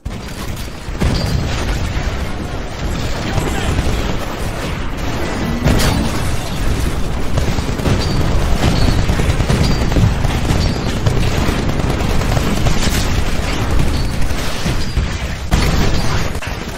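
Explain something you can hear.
Rapid gunfire rattles loudly.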